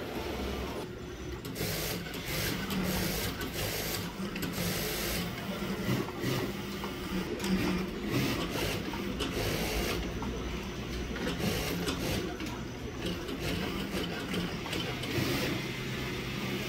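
A sewing machine stitches with a fast, steady whir.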